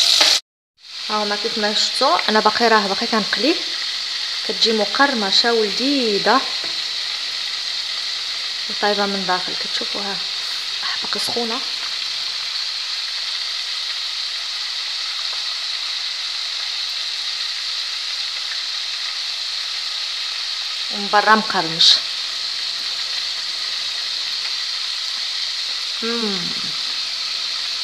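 Oil sizzles and bubbles steadily in a pot.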